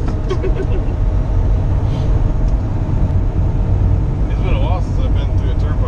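A middle-aged woman speaks cheerfully close by.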